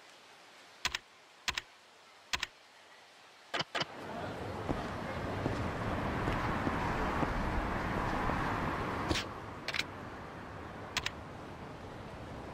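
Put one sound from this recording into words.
Short electronic menu clicks sound.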